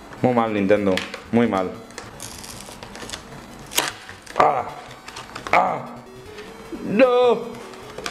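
Cardboard scrapes and taps as a small box is opened.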